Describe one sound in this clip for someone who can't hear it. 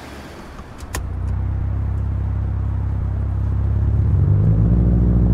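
A car engine hums low and steady, then revs higher.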